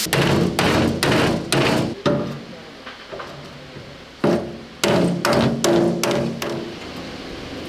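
A hammer bangs on sheet metal.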